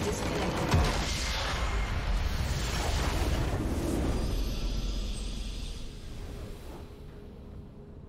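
A loud explosion booms and rumbles, then slowly fades.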